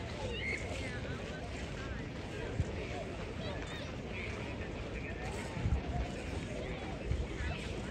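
Boots crunch and shuffle on gravel as a group marches past.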